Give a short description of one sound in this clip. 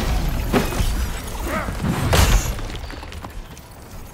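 A sword slashes through the air with a sharp swish.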